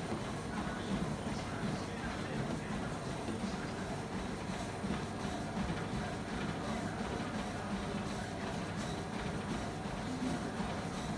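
A treadmill belt whirs and rumbles steadily.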